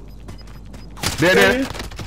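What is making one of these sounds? A gun fires a single shot.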